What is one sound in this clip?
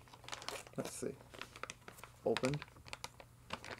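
Small items rustle and click in a young man's hands.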